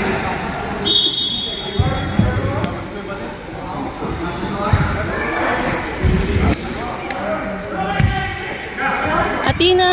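A basketball bounces on a hard floor with dull thuds.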